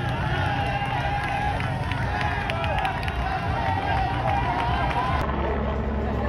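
A motorcycle engine hums as it rolls past.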